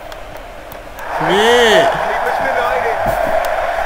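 A stadium crowd suddenly roars and cheers loudly.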